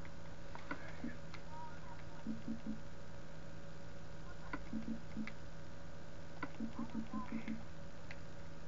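Short game menu blips sound in quick bursts from a television.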